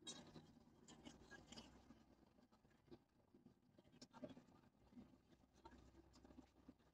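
A vehicle rumbles and hums, heard from inside, as it cruises on a highway.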